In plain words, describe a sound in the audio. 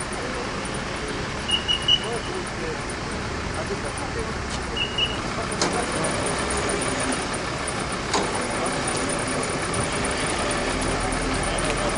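An engine idles steadily nearby.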